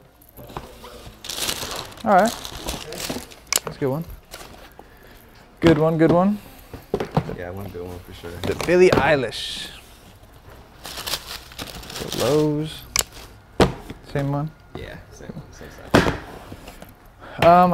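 Cardboard shoe boxes rustle and thump as they are handled.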